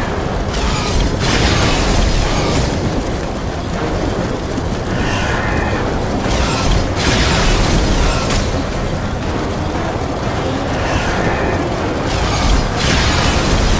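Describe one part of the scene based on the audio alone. Fiery bursts crackle and burst.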